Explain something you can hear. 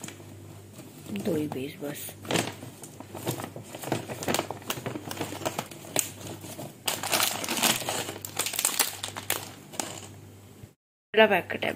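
Plastic snack packets crinkle and rustle as a hand rummages through them.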